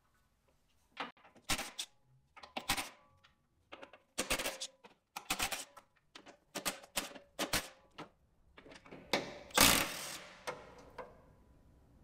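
A cordless ratchet whirs in short bursts.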